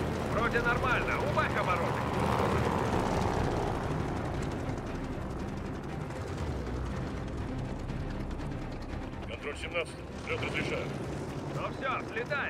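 A propeller plane's engine rumbles steadily.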